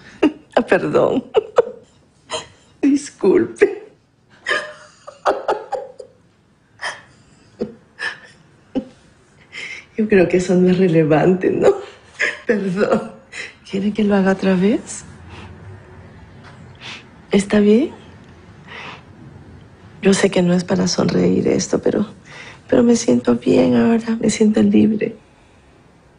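A middle-aged woman speaks close by, hesitantly and with pauses.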